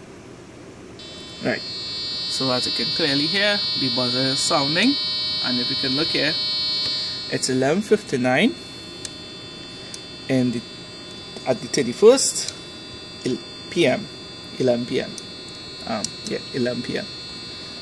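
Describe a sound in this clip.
A small speaker gives off a steady, high electronic tone.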